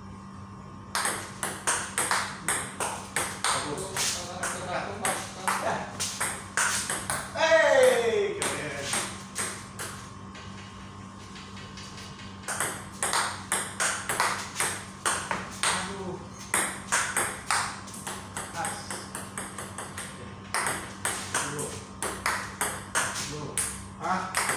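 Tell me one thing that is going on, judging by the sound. A ping-pong ball clicks rapidly back and forth on a table and paddles.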